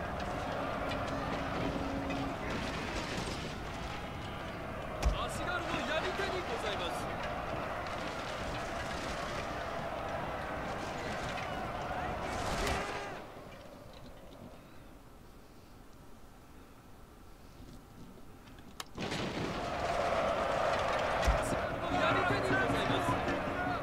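A crowd of soldiers roars and clashes in a battle.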